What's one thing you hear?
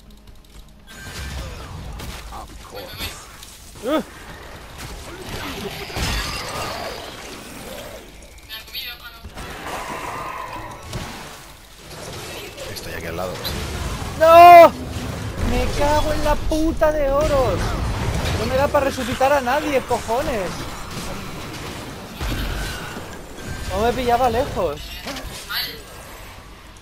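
Game spells and weapons clash and blast in a fight.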